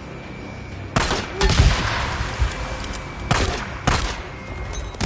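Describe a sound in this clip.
A pistol fires several sharp shots.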